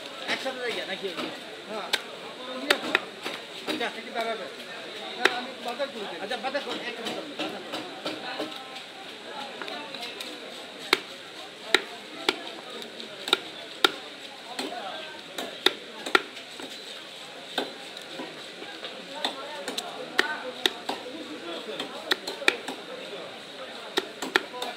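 A knife chops and taps sharply on a wooden block.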